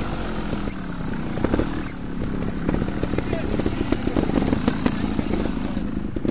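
Other motorcycle engines rev nearby.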